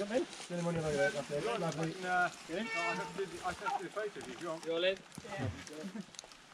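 A man talks nearby, outdoors.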